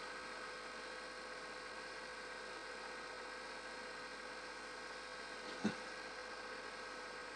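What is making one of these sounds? A small monitor hums steadily nearby.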